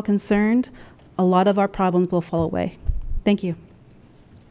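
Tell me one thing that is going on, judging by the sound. A woman speaks earnestly into a microphone.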